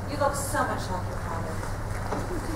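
A woman speaks with emotion, heard from a distance in a large hall.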